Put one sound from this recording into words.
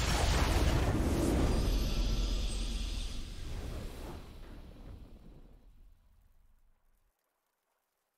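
A triumphant victory fanfare plays and fades away.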